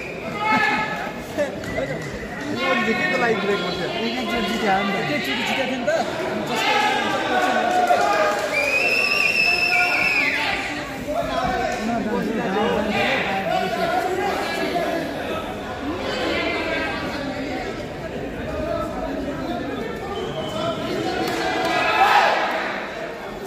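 A young man talks close by in a large echoing hall.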